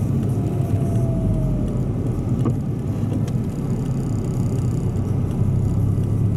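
Tyres roll over a slushy road.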